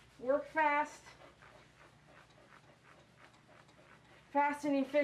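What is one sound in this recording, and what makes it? A dog whines and howls close by in short bursts.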